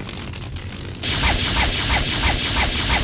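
Magical flames burst alight one after another in rhythmic whooshes.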